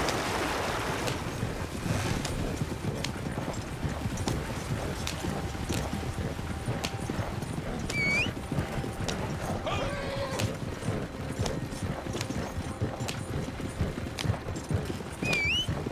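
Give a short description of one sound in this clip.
Wagon wheels rumble and creak over a rough track.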